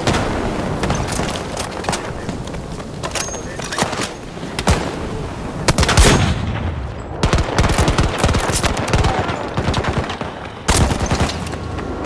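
Rifle shots crack loudly and rapidly.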